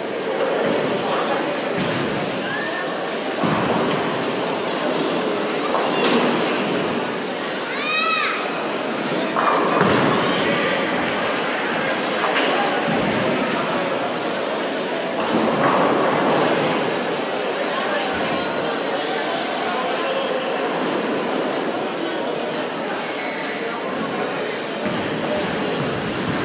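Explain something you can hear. Voices murmur and pins clatter steadily in a large echoing hall.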